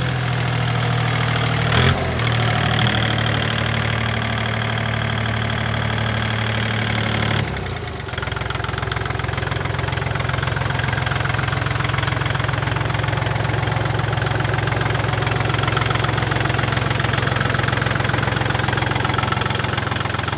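A small tractor's diesel engine idles with a steady low rumble close by.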